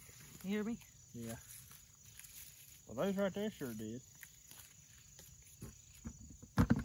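Tomato plants rustle as they are handled.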